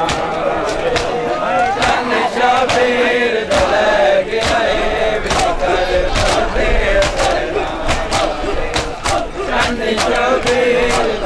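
A crowd of men chants a mournful lament together outdoors.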